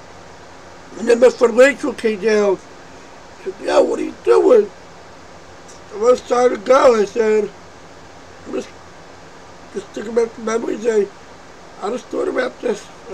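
A man speaks calmly and close up, in short bursts with pauses.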